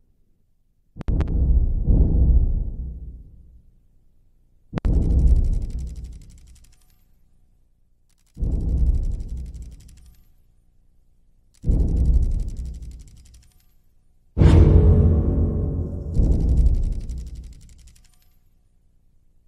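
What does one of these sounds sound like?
Deep booming hits ring out one after another, each fading away slowly.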